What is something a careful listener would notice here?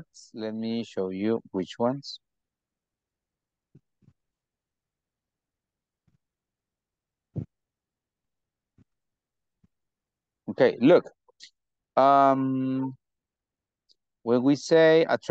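A young man speaks calmly through an online call, in short bursts with pauses.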